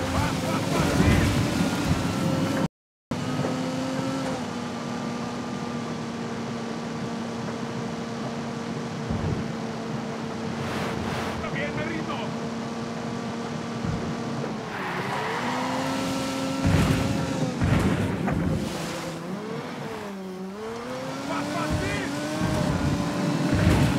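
A sports car engine hums steadily and rises and falls in pitch as it speeds along.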